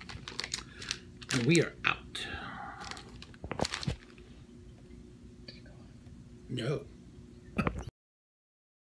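A plastic candy bag crinkles in hands.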